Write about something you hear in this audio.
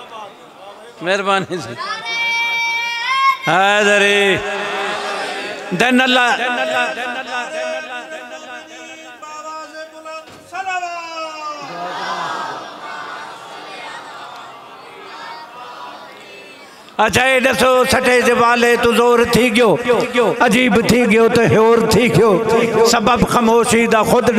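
An elderly man chants and recites through a microphone in a reverberant hall.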